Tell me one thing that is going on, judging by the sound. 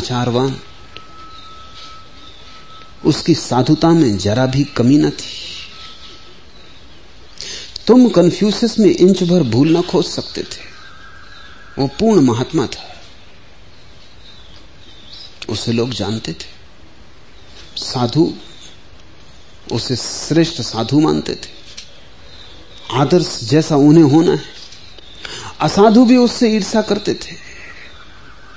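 A middle-aged man speaks slowly and calmly, with long pauses.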